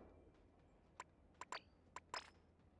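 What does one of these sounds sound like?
Game menu sounds click and blip in quick succession.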